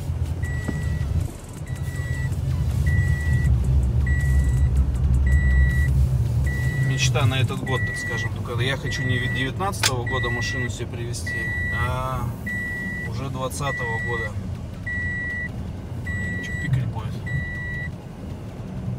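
A car's warning chime beeps over and over at an even pace.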